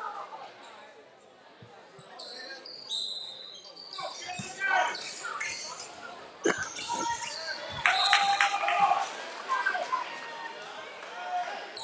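A crowd of spectators murmurs and cheers.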